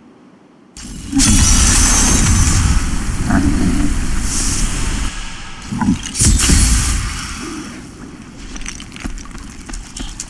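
A magic spell crackles and hisses in bursts.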